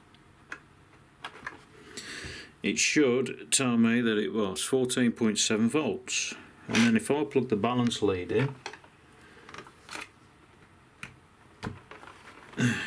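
A plug clicks firmly into a socket.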